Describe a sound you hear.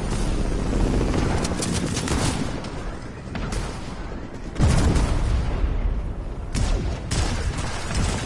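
Footsteps run across grass.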